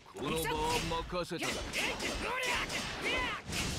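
A burst of magical energy whooshes loudly.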